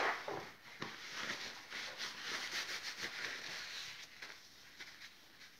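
Hands rub together briskly.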